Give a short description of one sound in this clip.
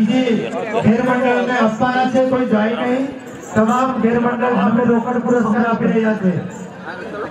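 Men sing a chant together loudly.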